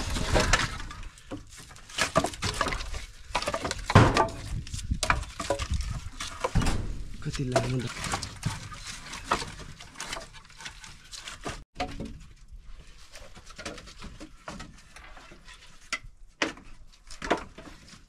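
Logs of firewood knock and clatter as they are stacked.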